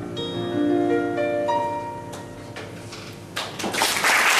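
An acoustic guitar rings out a final chord.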